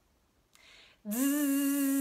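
A young woman breathes in sharply close by.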